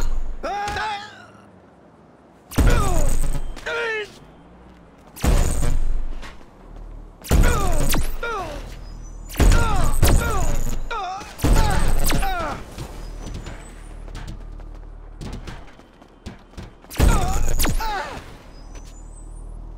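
A body thuds hard onto the ground, again and again.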